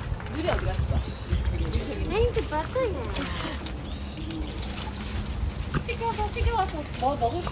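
Small paws scuffle on gravel.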